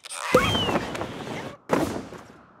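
A cartoon bird squawks.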